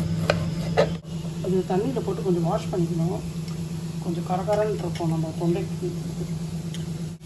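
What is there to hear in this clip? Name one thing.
Water sloshes as a hand stirs in a metal bowl.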